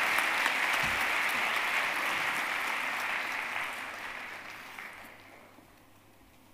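An audience applauds in a large hall and the applause fades.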